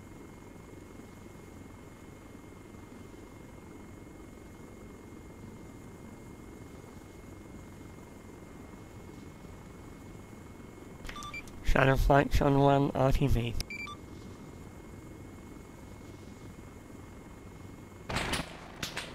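A helicopter's rotor drones and thuds steadily.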